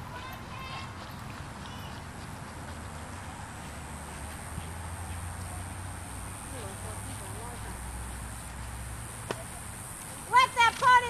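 A horse's hooves thud softly on loose sand.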